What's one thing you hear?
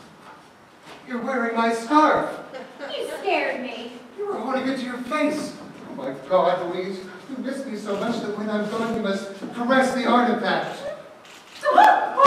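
A woman sings on a stage, heard from the audience in a large hall.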